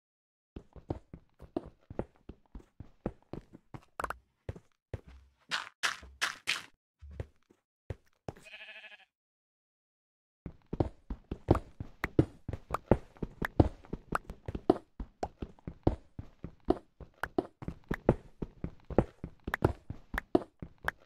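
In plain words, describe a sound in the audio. A pickaxe chips rapidly at stone blocks.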